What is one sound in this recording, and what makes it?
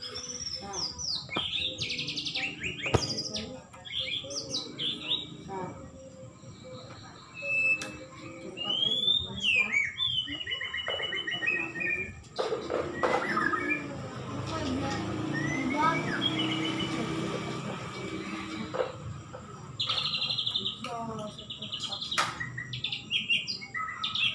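A caged bird sings loud, varied whistling songs close by.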